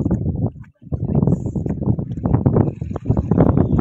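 A swimmer splashes in the water nearby.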